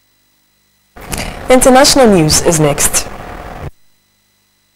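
A young woman reads out calmly into a microphone.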